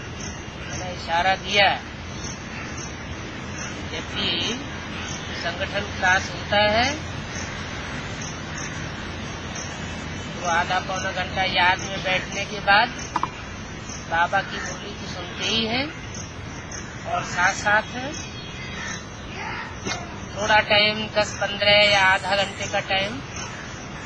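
An elderly man speaks calmly and close by, with pauses.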